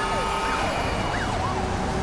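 A car scrapes against a barrier.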